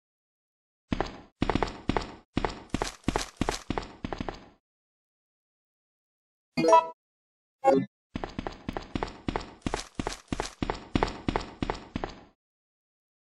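Boots tap steadily on a hard floor.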